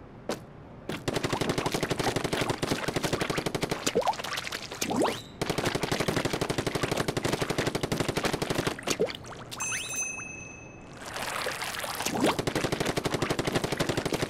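A game weapon sprays ink in rapid, rattling bursts.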